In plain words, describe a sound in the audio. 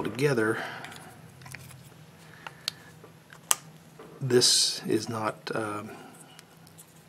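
Small hard parts click softly as they are fitted together.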